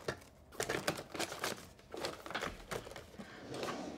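Small objects clatter and rustle on a table.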